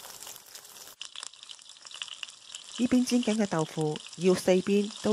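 Oil sizzles and crackles in a frying pan.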